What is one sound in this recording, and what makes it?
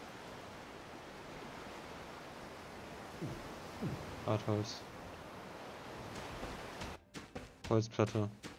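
Footsteps crunch softly on forest ground.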